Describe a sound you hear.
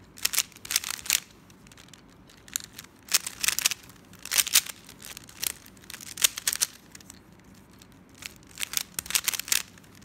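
Plastic puzzle cube layers click and clatter as they are turned quickly.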